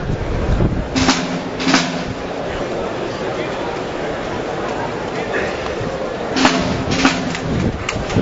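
Rifles clack in unison as a group of soldiers performs a drill.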